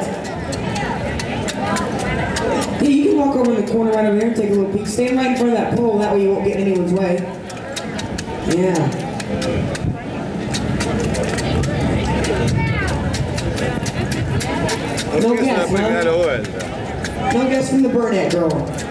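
A chisel chips and scrapes at a block of ice with quick, sharp taps.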